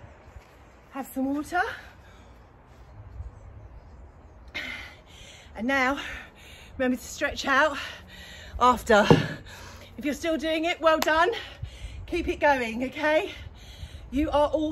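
A woman talks to the listener with animation, close by.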